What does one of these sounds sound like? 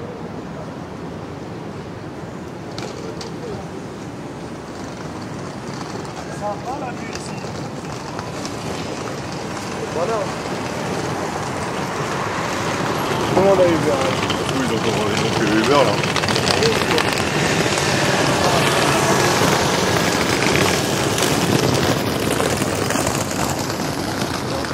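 Traffic hums steadily outdoors.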